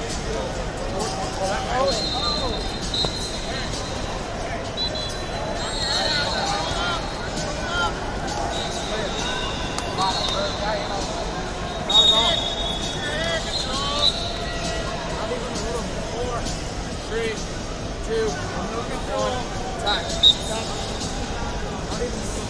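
A crowd of many people chatters in a large echoing hall.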